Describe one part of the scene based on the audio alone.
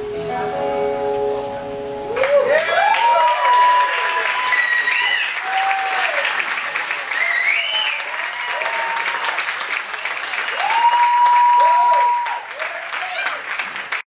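Two acoustic guitars play.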